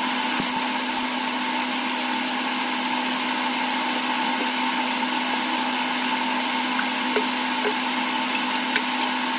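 An electric welding arc hisses and crackles steadily.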